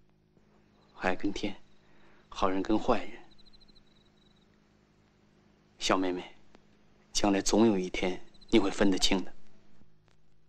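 A young man speaks calmly and gently, close by.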